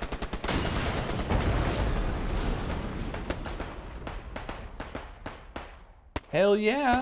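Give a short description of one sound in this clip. A distant explosion booms and rumbles away.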